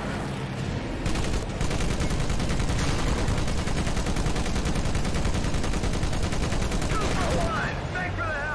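A heavy machine gun fires in long rapid bursts.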